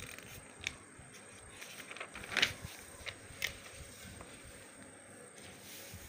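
A hand turns a book's page with a soft rustle.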